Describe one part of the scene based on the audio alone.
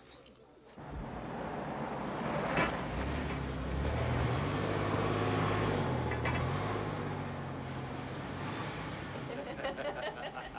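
A car engine rumbles past on a street.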